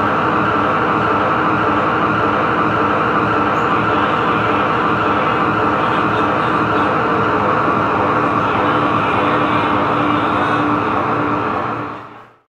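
Distorted electric guitars play a loud, dense wall of noise that fades out at the end.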